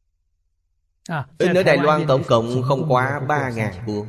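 An elderly man speaks calmly and warmly into a microphone.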